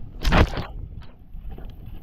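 Water drips and splatters onto pavement.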